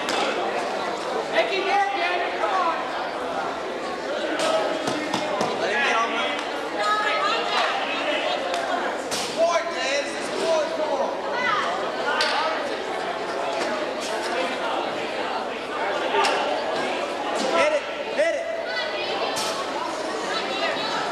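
A crowd of spectators chatters and shouts in a large echoing gym.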